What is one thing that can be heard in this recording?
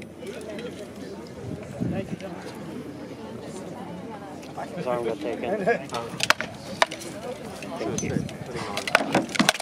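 A crowd murmurs and chatters outdoors in the distance.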